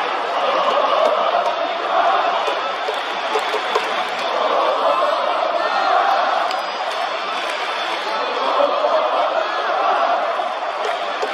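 A large stadium crowd cheers and chatters loudly throughout.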